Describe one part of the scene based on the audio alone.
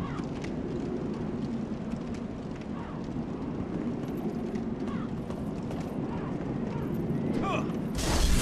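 Metal armour clinks and rattles with each step.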